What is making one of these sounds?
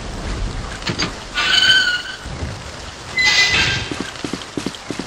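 A metal gate creaks open with a screech.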